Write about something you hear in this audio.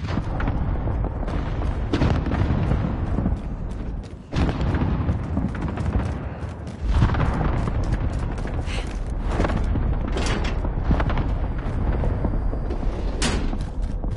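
Quick footsteps thud on hard ground.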